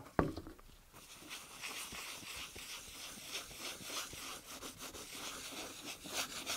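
A cloth rubs in quick circles on a smooth surface.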